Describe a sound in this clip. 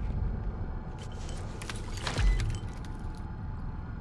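A wet squelch sounds as meat is cut.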